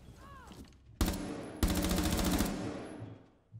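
A rifle fires a rapid, loud burst of shots.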